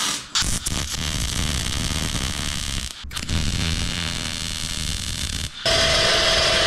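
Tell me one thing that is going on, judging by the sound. A welding torch crackles and sizzles steadily.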